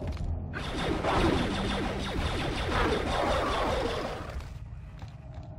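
Blaster fire crackles in rapid bursts.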